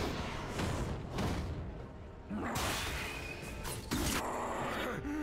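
Fantasy game spells burst and whoosh during a fight.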